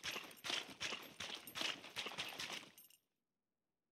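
Footsteps run quickly over muddy ground.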